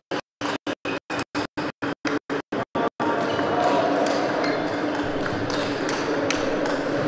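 A table tennis ball clicks against paddles and the table in a quick rally.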